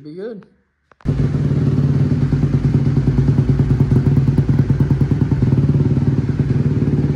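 A motorcycle engine idles loudly close by with a steady rumble.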